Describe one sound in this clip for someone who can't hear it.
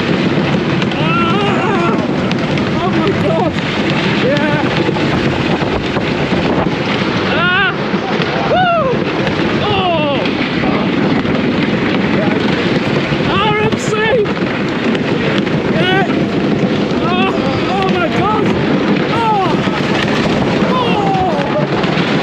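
Young riders scream and whoop nearby.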